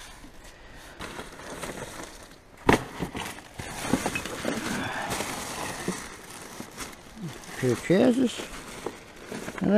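Plastic bags and wrappers rustle and crinkle as rubbish is handled.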